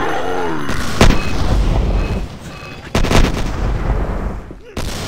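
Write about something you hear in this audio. A game weapon fires with loud, booming blasts.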